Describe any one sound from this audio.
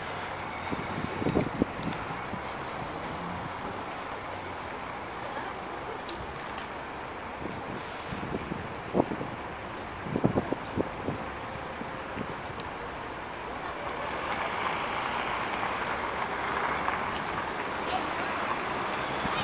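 A trolleybus pulls in and hums quietly close by.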